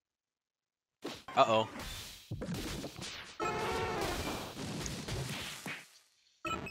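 Cartoon battle sound effects zap and crackle as attacks land.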